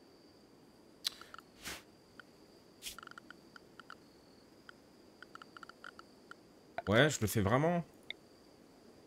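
Short game interface clicks and ticks sound now and then.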